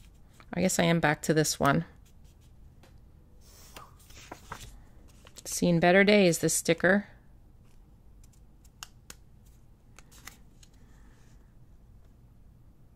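Paper rustles softly as stickers are pressed down.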